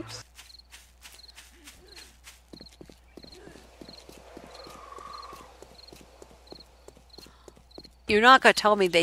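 Footsteps tread steadily over grass and ground.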